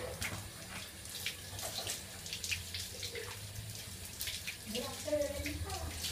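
Water splashes from a hose onto a tiled floor.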